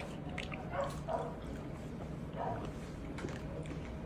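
A person sips water and swallows.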